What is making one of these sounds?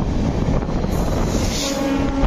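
A passing train roars by suddenly close.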